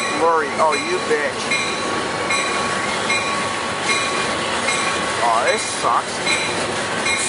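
Cars drive past with a steady hiss of tyres on the road.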